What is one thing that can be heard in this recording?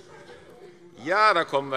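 Another man starts speaking into a microphone.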